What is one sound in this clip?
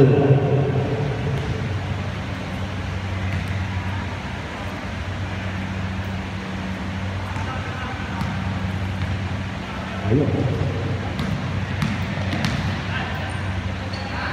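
Players shout to each other across the hall.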